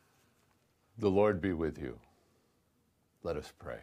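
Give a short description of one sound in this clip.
An older man speaks calmly and clearly into a close microphone.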